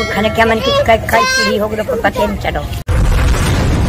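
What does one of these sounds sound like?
A middle-aged woman speaks with emotion, close to a microphone.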